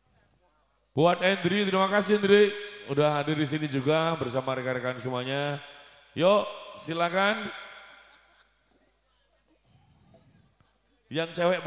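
A man sings loudly through loudspeakers outdoors.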